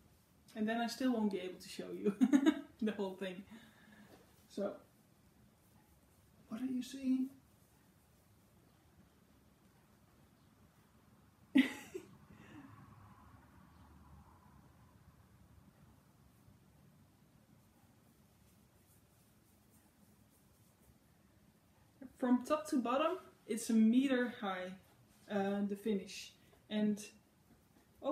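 Fabric rustles as a cloth is handled.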